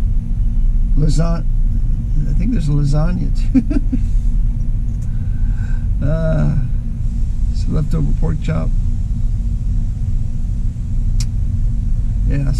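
A middle-aged man speaks casually, close by.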